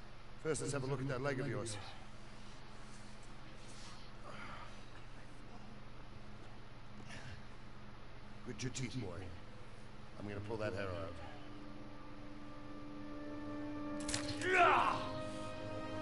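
An older man speaks calmly and firmly, close by.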